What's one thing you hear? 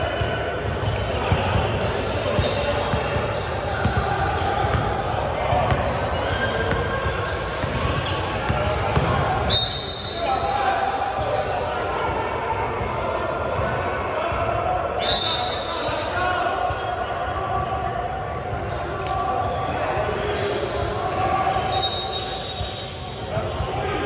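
Young men call out to each other in a large echoing gym.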